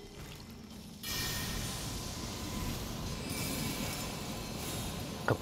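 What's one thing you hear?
A magical blade charges with a steady shimmering hum.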